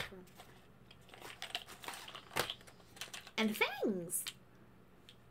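A plastic case clicks and rattles.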